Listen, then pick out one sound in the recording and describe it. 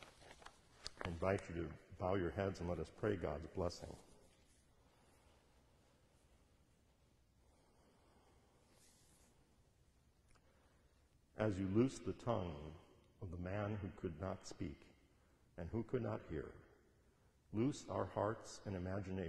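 A man speaks slowly and solemnly into a microphone in a large echoing hall.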